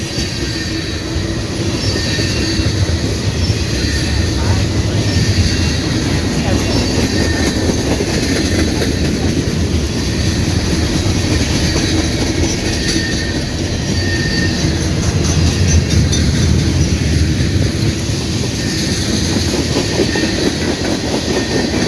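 Steel wheels squeal faintly on the track.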